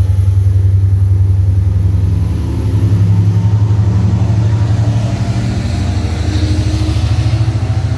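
A train's wheels clatter rapidly on the rails.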